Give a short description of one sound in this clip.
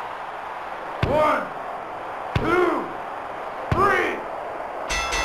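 A referee slaps the mat three times with deep, booming thuds.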